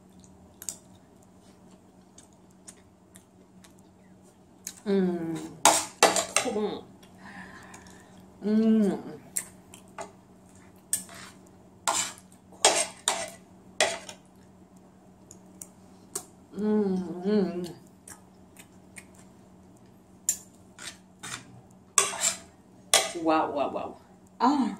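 A woman chews and slurps food with her mouth open.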